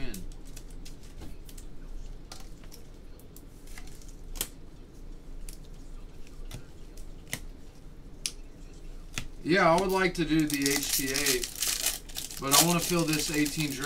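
A foil card wrapper crinkles and rips as it is torn open.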